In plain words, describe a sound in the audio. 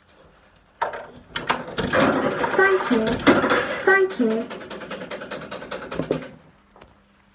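A children's ride plays a cheerful tune through a small loudspeaker.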